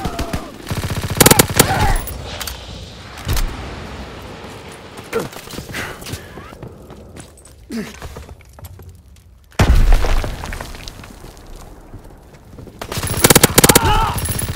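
A gun fires rapid bursts of shots.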